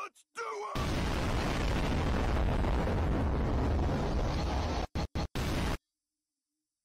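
A young man screams loudly with heavy distortion.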